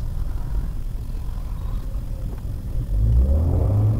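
A motorcycle engine passes close by.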